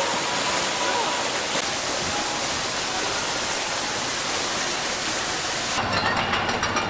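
Water from a fountain splashes and gushes steadily.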